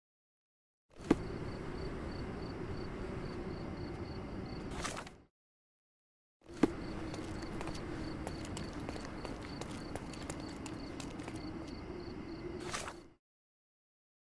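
Footsteps tread on cobblestones outdoors.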